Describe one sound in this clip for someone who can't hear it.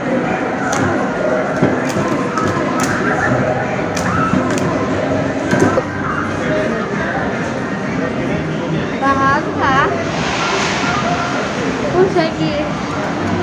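An arcade game plays electronic music and beeps.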